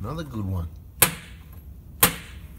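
Small metal rods clink down onto a metal table.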